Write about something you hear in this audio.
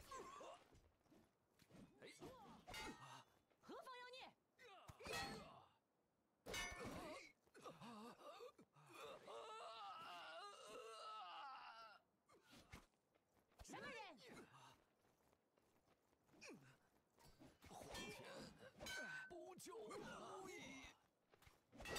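Blades swing and strike with sharp metallic hits.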